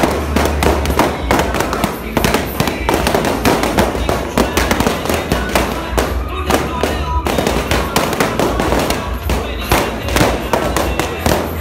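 Loud dance music with a thumping beat plays through loudspeakers in a large room.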